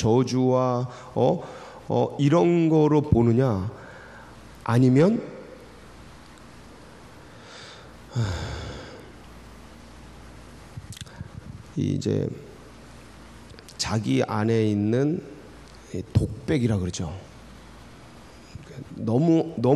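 A middle-aged man speaks with feeling into a microphone, in bursts with long pauses.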